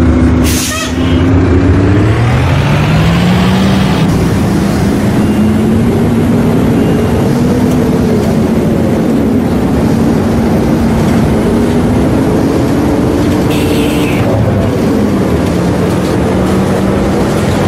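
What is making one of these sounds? A bus engine revs up as the bus pulls away and drives on.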